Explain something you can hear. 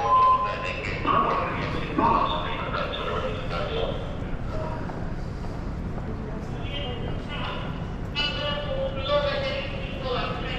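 A man speaks on a phone nearby.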